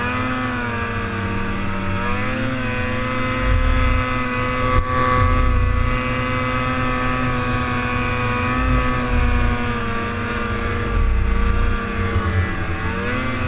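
Wind rumbles past a helmet microphone.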